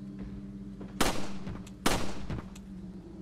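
Gunshots crack sharply twice.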